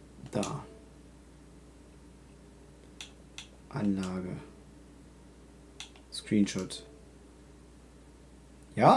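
A man speaks in short bursts into a close microphone.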